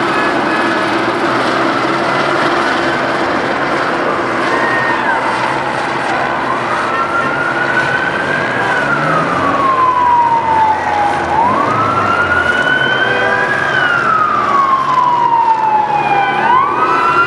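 A crowd murmurs and shouts in the street outdoors.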